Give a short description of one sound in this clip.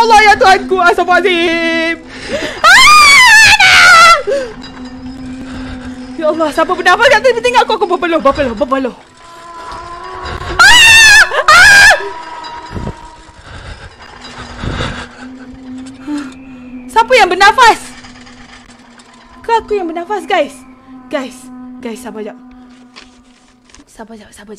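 A young woman talks and exclaims with animation close to a microphone.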